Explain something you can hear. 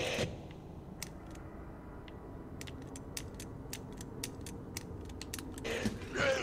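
A combination padlock's dials click as they turn.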